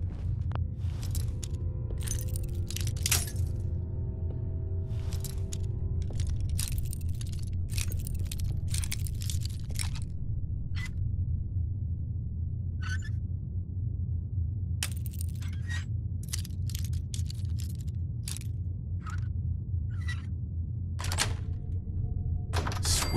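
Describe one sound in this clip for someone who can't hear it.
A bobby pin and screwdriver scrape and click inside a small metal lock.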